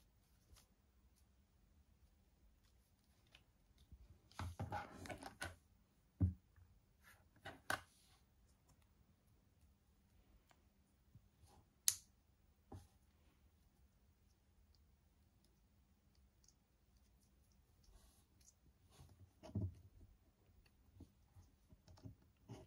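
Small plastic parts click and tap as a doll is handled up close.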